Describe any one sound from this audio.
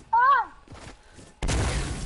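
A pickaxe strikes a wall with hard thuds.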